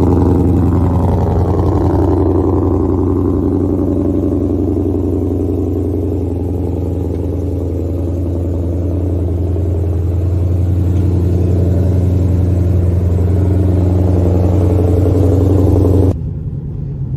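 A sports car engine idles close by with a deep, steady rumble.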